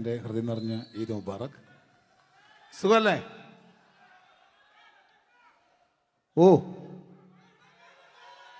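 A man sings loudly into a microphone, heard through loudspeakers.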